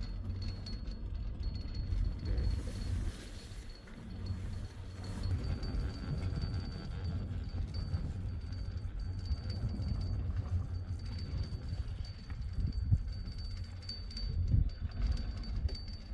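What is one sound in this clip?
Wind rumbles and buffets against a microphone outdoors.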